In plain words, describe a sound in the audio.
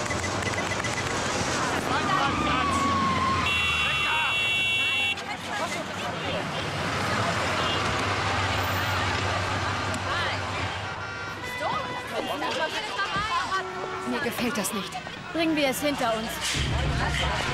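A crowd of people talk and shout excitedly outdoors.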